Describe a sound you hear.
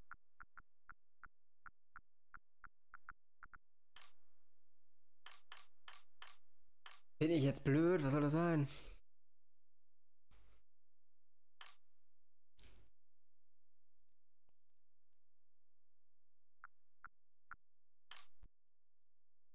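Short game menu blips tick quickly as a cursor moves.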